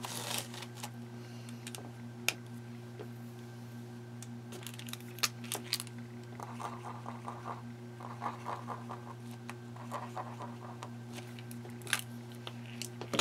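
Pens and plastic sheets click and rattle as they are handled.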